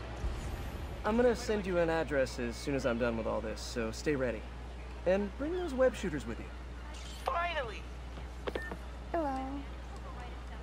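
A man speaks calmly over a phone call.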